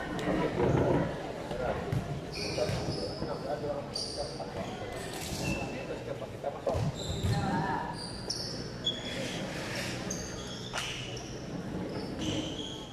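Young spectators chatter in the background.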